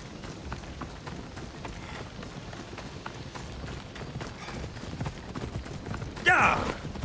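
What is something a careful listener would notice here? Footsteps run along a dirt path.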